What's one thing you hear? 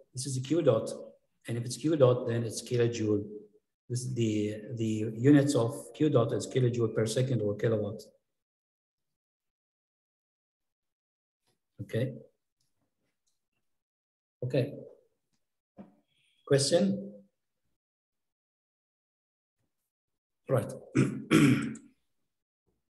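A man speaks calmly through a microphone, in bursts with long pauses.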